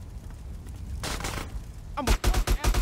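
An adult man talks close into a headset microphone.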